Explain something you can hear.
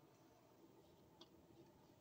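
Wire clips click together.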